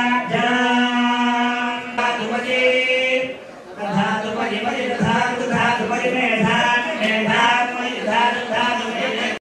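A crowd of worshippers chants loudly in an echoing hall.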